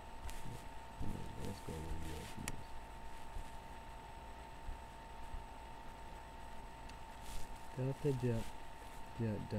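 A young man speaks quietly and calmly close to a microphone.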